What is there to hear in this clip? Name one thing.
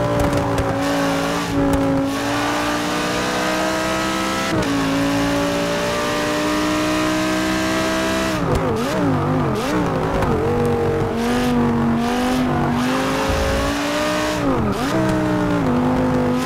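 A racing car engine roars at high revs, rising through the gears and dropping as it brakes for corners.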